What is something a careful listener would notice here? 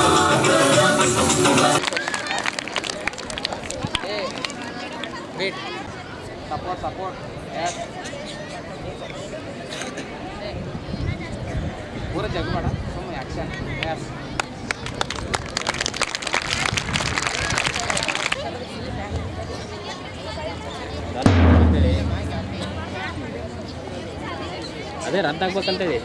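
Many children chatter and call out nearby outdoors.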